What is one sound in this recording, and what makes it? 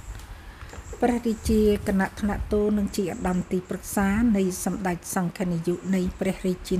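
An older woman speaks in a steady, chanting voice close to a microphone.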